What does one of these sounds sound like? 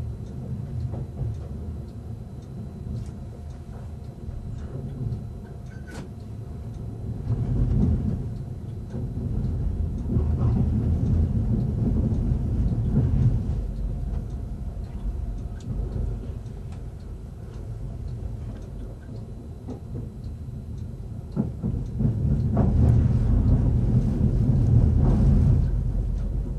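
Wheels clatter over rail joints and points.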